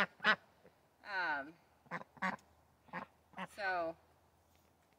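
Ducks quack loudly and close by in short bursts.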